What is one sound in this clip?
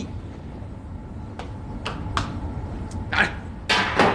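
Footsteps clank on metal stairs.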